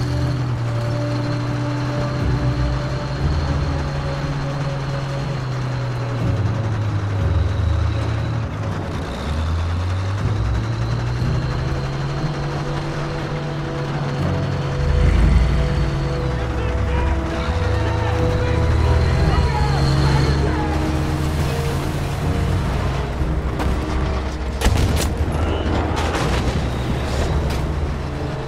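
A tank engine rumbles and whines steadily as the tank rolls along.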